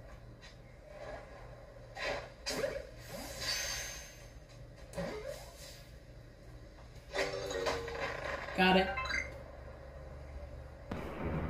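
Video game sound effects play from a television speaker.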